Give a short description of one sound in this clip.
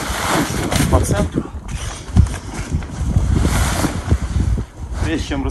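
Tent fabric rustles and crinkles as it is handled.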